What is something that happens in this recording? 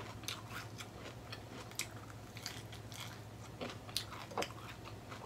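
A young woman chews food loudly and smacks her lips close by.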